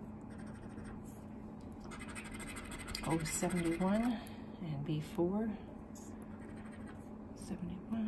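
A coin scratches across a card in short, rough strokes.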